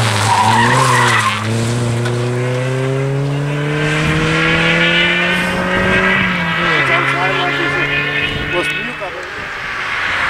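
A rally car engine revs hard and climbs in pitch as the car speeds away.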